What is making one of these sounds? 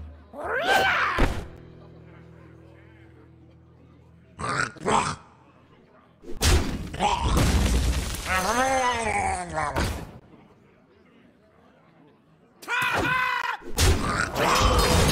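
Game sound effects crash and thud as pieces attack.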